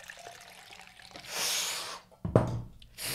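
Water pours and splashes into a cup.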